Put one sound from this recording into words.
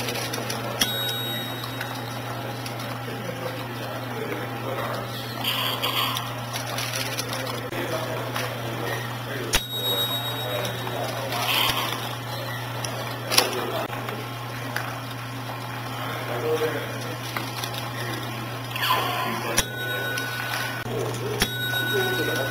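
Plastic parts of a machine click and clatter now and then.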